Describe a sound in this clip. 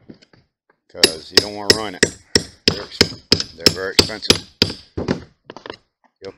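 A metal tool taps and scrapes against a metal pot.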